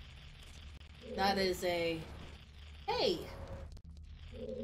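A young woman speaks casually into a microphone.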